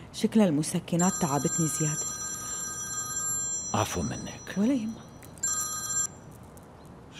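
A phone rings with a steady electronic tone.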